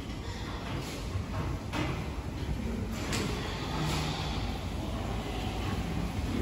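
Many pigs grunt and squeal close by.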